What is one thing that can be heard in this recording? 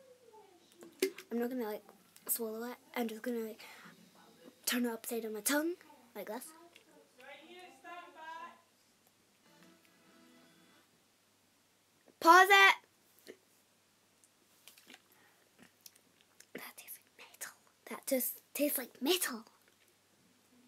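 A young girl gulps a fizzy drink from a plastic bottle.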